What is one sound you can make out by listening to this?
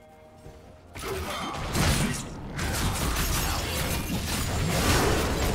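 Magic spells blast and crackle in a fast fight.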